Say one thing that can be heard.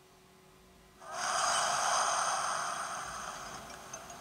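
Waves rush from a small game speaker.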